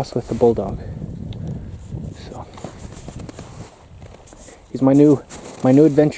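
A dog's paws crunch through snow.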